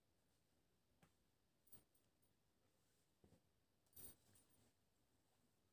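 Cloth rustles softly as hands fold and smooth fabric.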